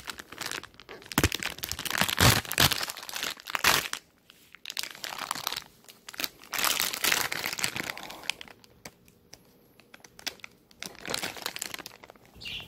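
A plastic food bag crinkles as hands handle it.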